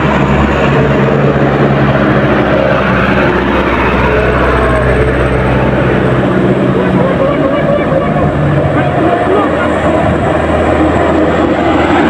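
A loaded diesel truck labors uphill.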